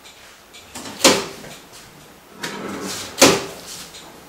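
An oven door opens with a clunk.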